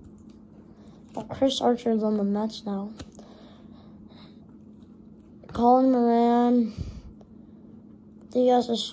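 Stiff paper cards rustle and slide softly against each other in the hands.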